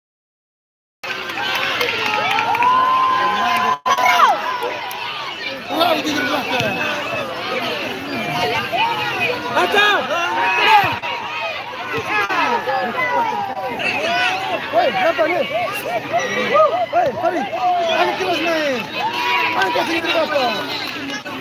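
A large outdoor crowd shouts and cheers excitedly.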